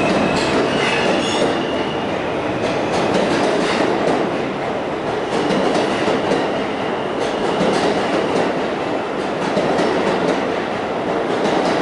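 A subway train pulls away, rumbling and clattering on the rails.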